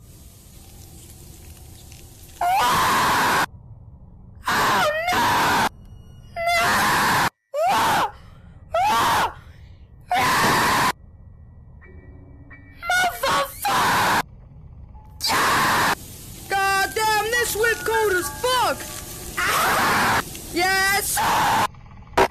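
A gas cloud bursts out with a loud hiss.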